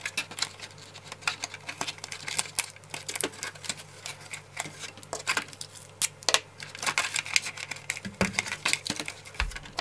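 Tape crackles as it is peeled and pressed.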